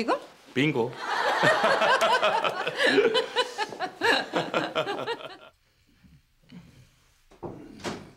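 An elderly woman laughs brightly.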